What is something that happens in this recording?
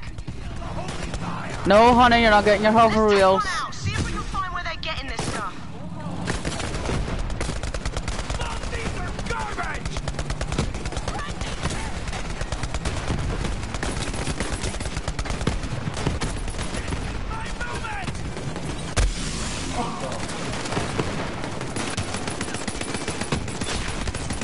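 Engines of game vehicles roar steadily.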